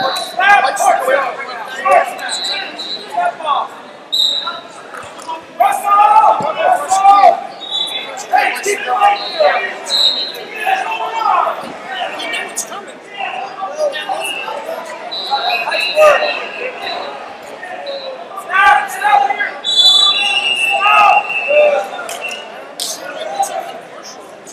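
A man shouts instructions from close by.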